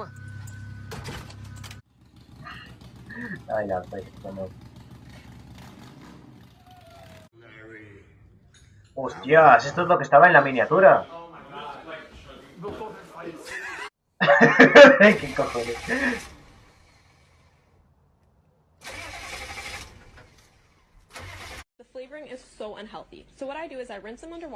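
A young man talks and laughs into a microphone, close by.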